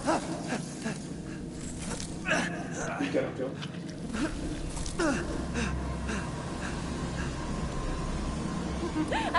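A man talks excitedly into a microphone.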